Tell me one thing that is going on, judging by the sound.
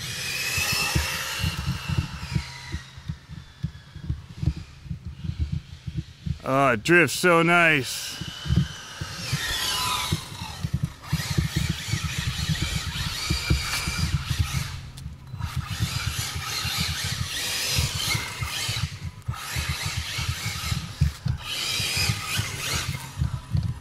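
A toy car's electric motor whines, rising and falling as it speeds up and slows.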